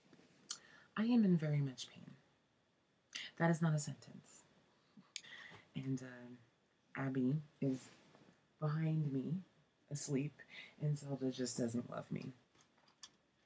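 A young woman talks casually and close up.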